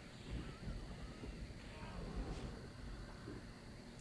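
A magic spell hums and shimmers.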